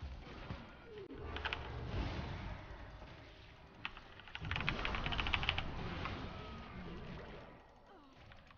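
Video game spell effects and combat clash and crackle.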